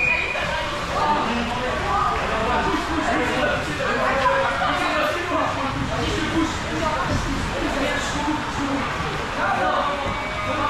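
Young women talk and call out with animation nearby.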